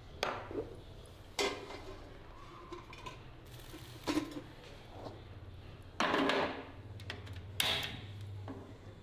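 Metal utensils clatter against pots and dishes.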